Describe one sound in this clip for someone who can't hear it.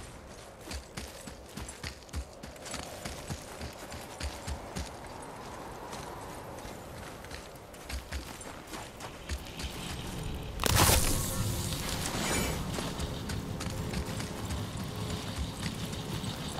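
Heavy footsteps crunch on snow.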